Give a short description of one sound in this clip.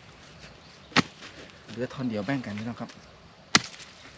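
A tool knocks sharply against the ground.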